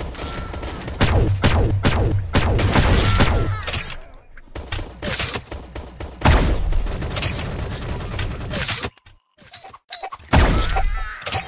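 A rifle fires loud single shots, one at a time.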